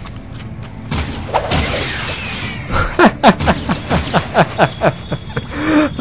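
A laser gun fires a string of quick shots.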